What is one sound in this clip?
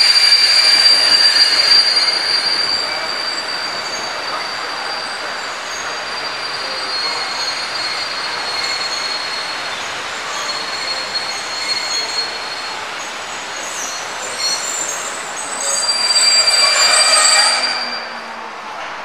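Train wheels squeal shrilly on the rails.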